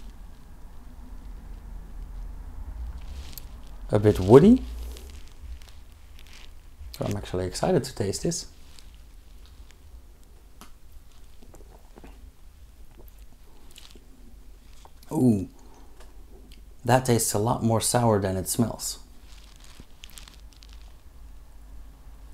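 A man sips a drink from a glass.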